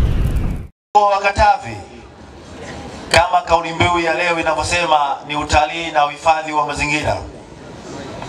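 A man speaks calmly and steadily through a microphone and loudspeaker.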